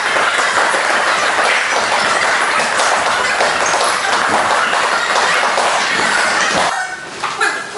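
Many people talk and move about at once in a large echoing hall.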